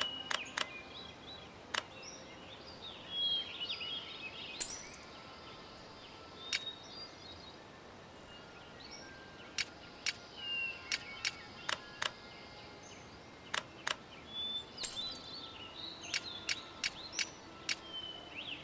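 Short game menu clicks tick as selections change.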